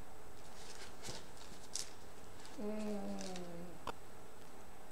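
Stiff cardboard rustles and knocks as it is hung on a wooden stand.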